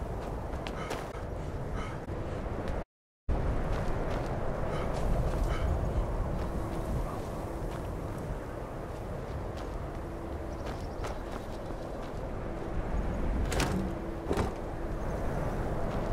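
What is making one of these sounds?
Footsteps crunch on snow and stone.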